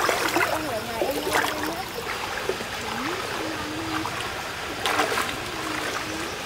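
Shallow stream water flows and ripples steadily.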